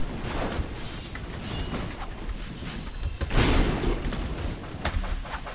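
Magic blasts whoosh and crackle in bursts.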